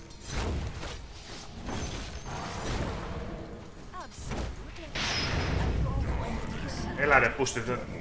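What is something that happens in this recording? Magic blasts and explosions crackle in a battle.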